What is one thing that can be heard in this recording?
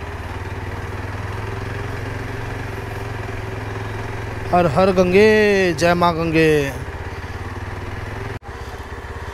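A motorcycle engine hums steadily while riding slowly.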